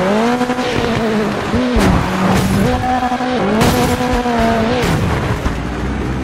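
A vehicle crashes and tumbles with loud thuds.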